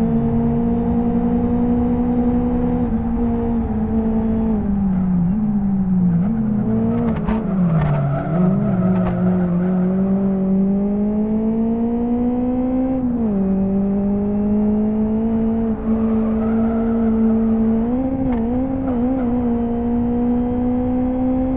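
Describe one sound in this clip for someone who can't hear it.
A car engine drones steadily, dropping in pitch as it slows and rising again as it speeds up.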